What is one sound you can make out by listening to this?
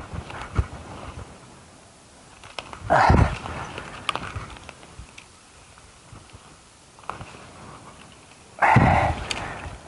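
Footsteps crunch on dry twigs and leaves.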